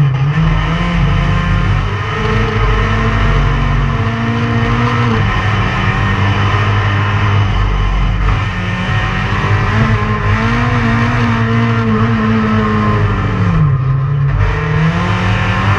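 A race car engine roars loudly from inside the cabin, revving up and down through the gears.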